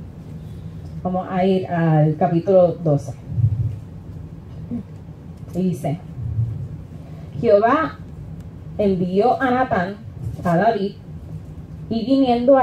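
A young woman speaks slowly into a microphone in a room with some echo.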